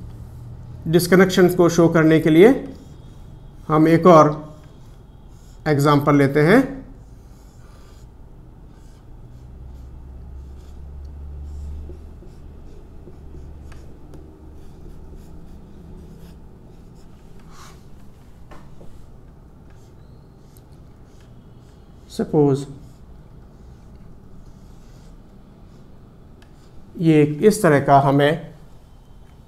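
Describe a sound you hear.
A middle-aged man speaks calmly, close by, with long pauses.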